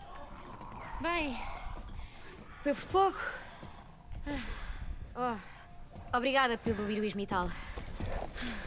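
A girl speaks softly and wearily.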